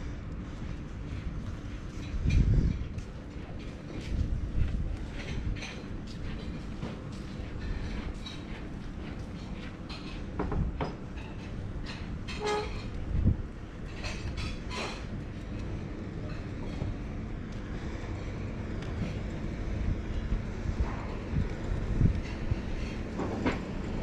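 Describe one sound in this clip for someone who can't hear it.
Footsteps crunch steadily on a gravel path outdoors.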